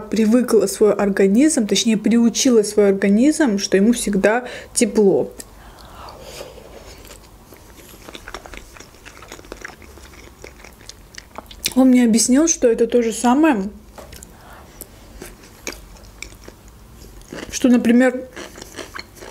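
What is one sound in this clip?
A young woman speaks softly and closely into a microphone.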